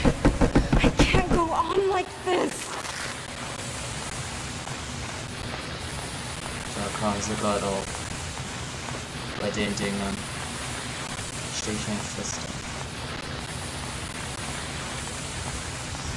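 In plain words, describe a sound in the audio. A flare ignites and burns with a steady hiss.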